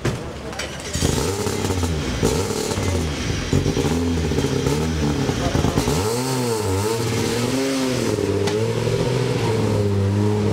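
A rally car engine starts and revs loudly.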